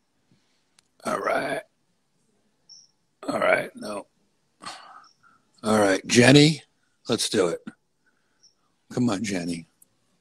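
A man speaks close to a microphone in short bursts with long pauses.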